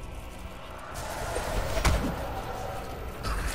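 A deep rumbling whoosh swells up.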